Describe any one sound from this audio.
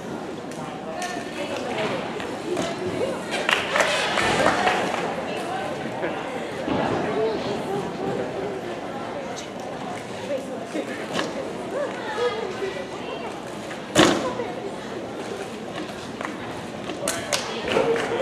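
Feet thud on a wooden balance beam.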